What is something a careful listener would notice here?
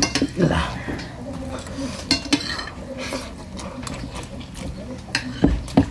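Fingers squish and mix rice on a plate.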